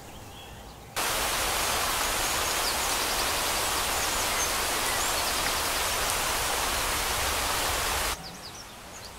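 Water sprays from a garden hose in a steady hiss.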